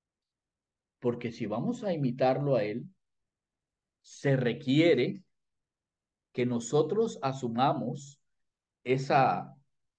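A middle-aged man speaks with animation over an online call.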